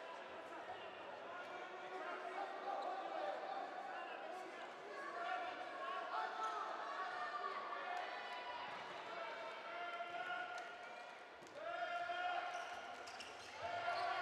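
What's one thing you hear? A handball bounces on a hard court floor.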